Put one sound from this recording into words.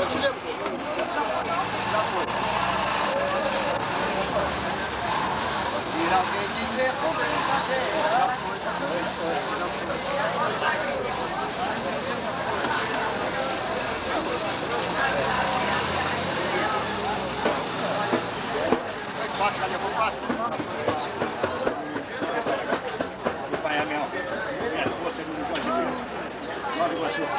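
A man sings into a microphone through a loudspeaker, outdoors.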